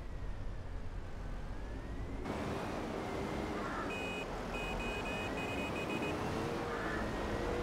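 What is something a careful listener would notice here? A heavy loader's diesel engine rumbles and whines steadily.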